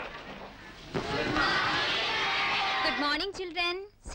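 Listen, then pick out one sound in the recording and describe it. Children chatter noisily in a classroom.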